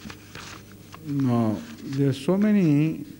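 An elderly man recites loudly in a chanting voice.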